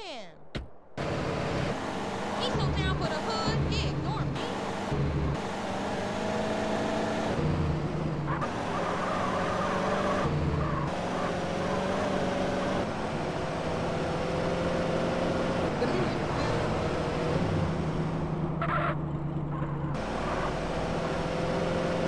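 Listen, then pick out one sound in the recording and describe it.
Music plays loudly from a car radio.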